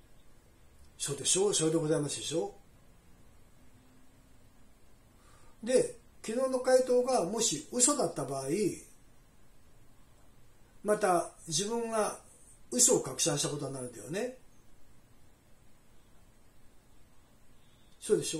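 A middle-aged man talks on a phone close by, in short calm bursts with pauses.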